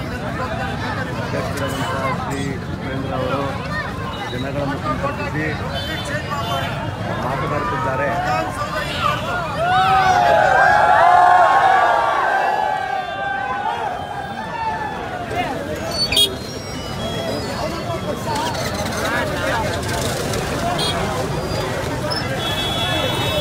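A large crowd of men shouts and cheers loudly outdoors.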